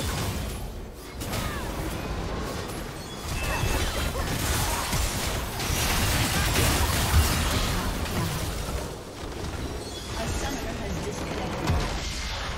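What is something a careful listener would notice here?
Magic spells and blasts crackle and whoosh in a video game battle.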